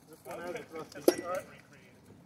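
A sword strikes a shield with a sharp clack.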